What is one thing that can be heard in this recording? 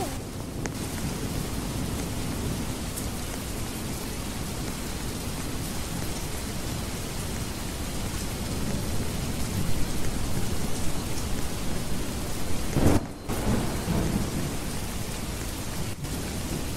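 A young boy talks with animation into a headset microphone.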